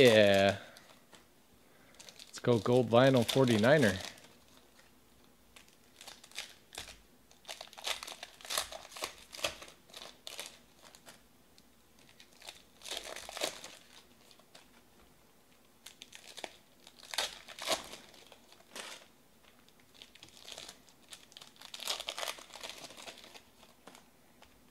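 Foil wrappers crinkle and tear as they are torn open.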